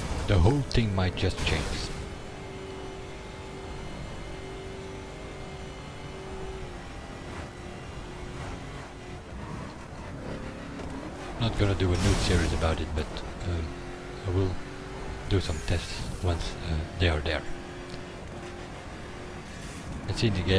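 A twin-turbo V8 supercar engine roars at high speed.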